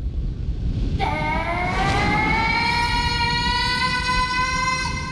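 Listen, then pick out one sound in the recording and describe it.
A gong is struck once and rings on with a long, shimmering tone.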